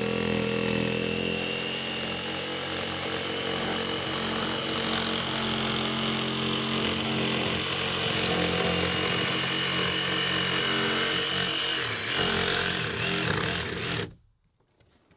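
A jigsaw buzzes steadily, cutting through wood.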